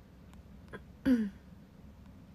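A young woman makes a brief, short vocal sound close by.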